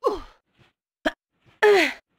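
Hands grab onto a stone ledge with a soft thud.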